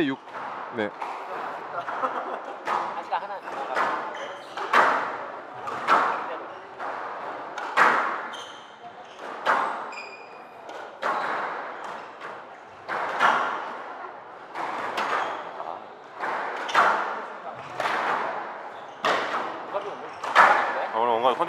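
A squash ball smacks hard against the walls in a fast rally, echoing in a hard-walled court.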